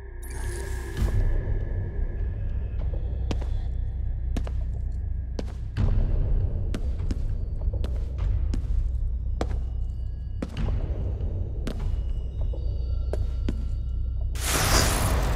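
Footsteps thud down concrete stairs at an even pace.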